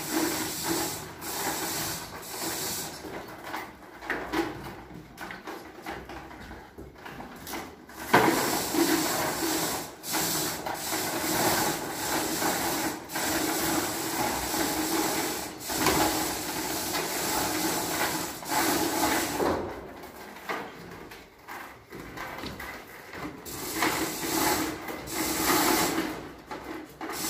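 A chain hoist clanks and rattles.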